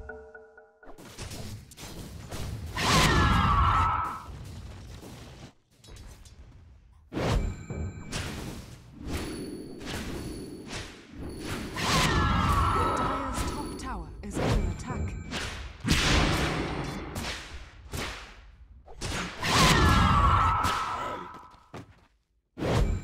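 Magical blasts and weapon strikes crash in a fight.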